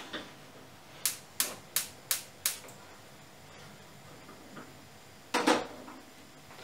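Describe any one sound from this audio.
A metal pot lid clatters on a stove.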